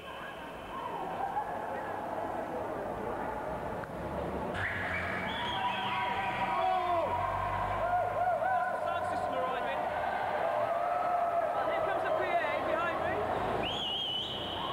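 A crowd of men and women talk and call out nearby.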